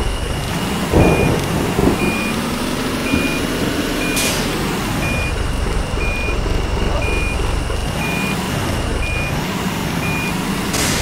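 A reversing alarm beeps at a steady pace.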